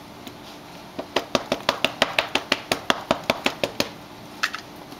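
A hand rubs and presses quickly over a plastic sheet, making rapid tapping sounds.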